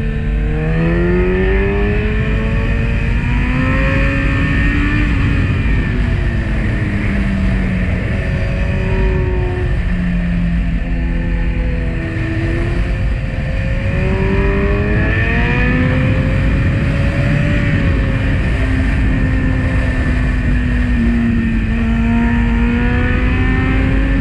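Wind roars steadily past a moving rider.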